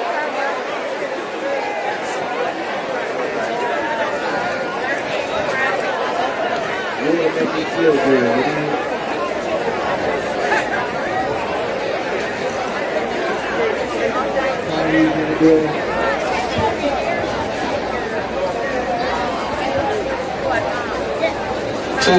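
A large outdoor crowd chatters and murmurs.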